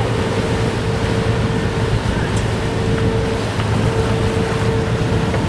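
Wind rushes loudly outdoors.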